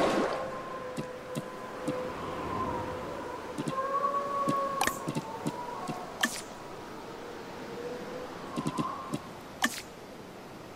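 Short game interface clicks sound now and then.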